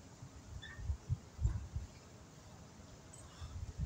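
An exercise machine creaks and knocks.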